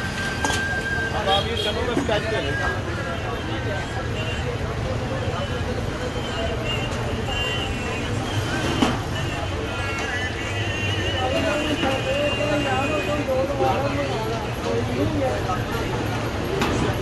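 Men chatter in the background.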